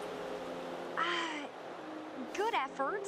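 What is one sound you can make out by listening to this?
A young woman speaks softly.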